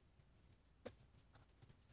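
A hand rubs across the pages of a notebook.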